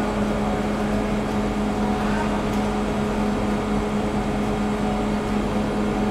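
Soft buns are set down on a metal baking tray with light taps.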